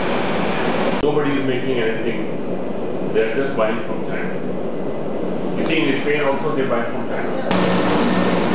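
A second man answers in conversation nearby.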